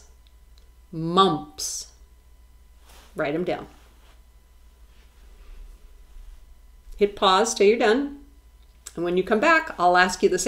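A middle-aged woman reads out single words slowly and clearly, close to a microphone, with pauses between them.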